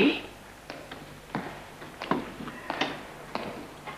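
A lantern clinks as it is set down.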